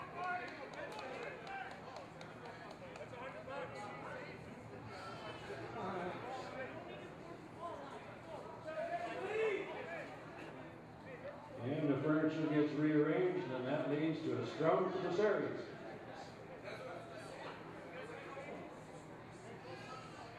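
Men shout and call out to each other across an open outdoor field.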